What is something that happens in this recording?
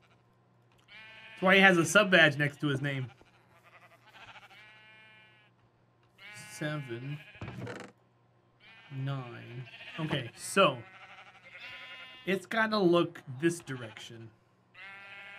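A man talks with animation into a microphone, close by.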